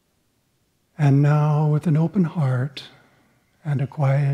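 An elderly man speaks calmly and close to a microphone.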